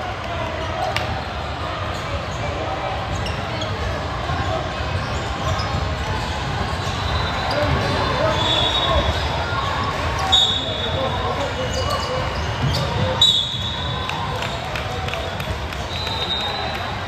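A crowd chatters throughout a large echoing gym.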